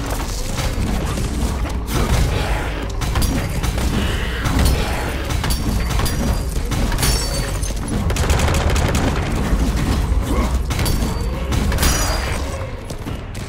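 Heavy blows strike and crackle with electric bursts.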